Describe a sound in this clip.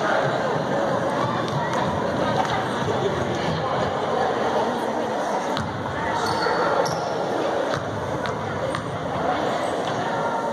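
Spectators murmur and chat close by in an echoing gym.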